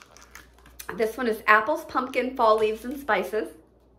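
Plastic packaging crinkles in a woman's hands.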